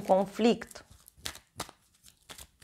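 Cards rustle and snap as they are shuffled.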